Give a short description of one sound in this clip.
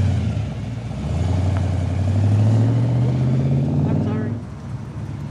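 A car pulls away with a deep roar.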